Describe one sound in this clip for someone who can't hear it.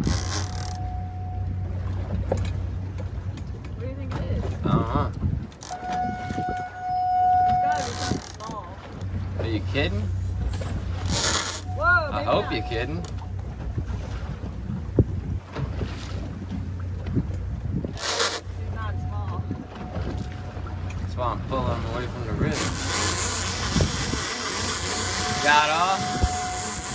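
A fishing reel's drag whines in short bursts as line pulls out.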